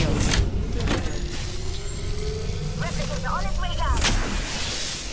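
An electric charger hums with a slowly rising whine.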